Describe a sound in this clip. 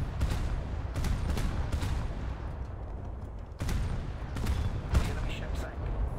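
Heavy guns fire in loud, repeated booms.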